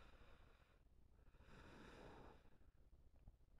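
Smoke jets blast with a loud hiss.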